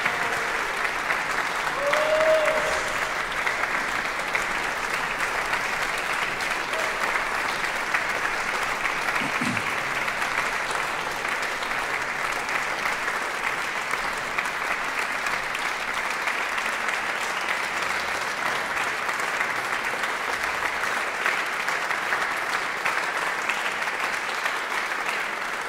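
An audience applauds steadily in a large, echoing hall.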